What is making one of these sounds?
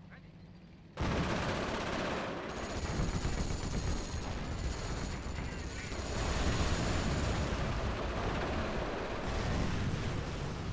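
Machine guns rattle in rapid bursts.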